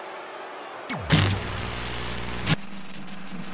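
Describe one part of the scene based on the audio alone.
Television static hisses loudly.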